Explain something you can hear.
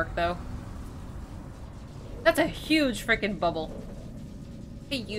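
A young woman talks with animation into a nearby microphone.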